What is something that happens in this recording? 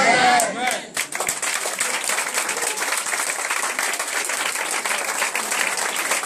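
A crowd claps hands rapidly.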